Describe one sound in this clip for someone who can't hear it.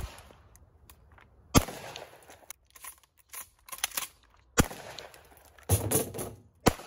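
A shotgun fires loud shots outdoors, echoing off the surroundings.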